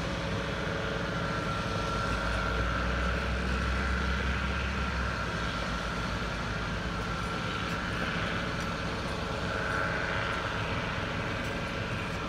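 Heavy diesel engines rumble steadily nearby.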